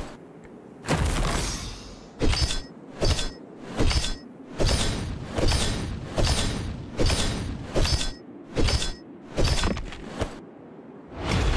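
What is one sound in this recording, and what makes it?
Punchy game sound effects burst in quick, regular succession.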